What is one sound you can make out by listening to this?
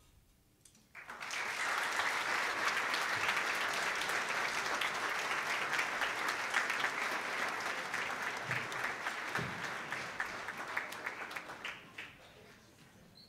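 An audience applauds in a large echoing hall, the clapping swelling quickly and then fading away.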